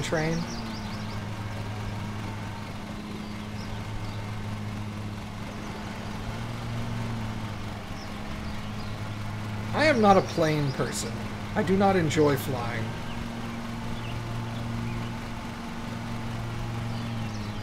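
A lawn mower engine hums steadily.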